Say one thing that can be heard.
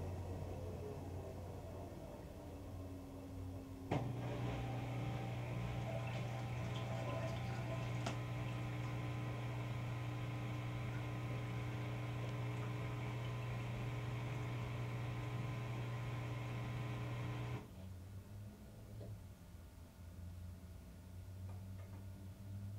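A washing machine drum hums and whirs steadily as it turns.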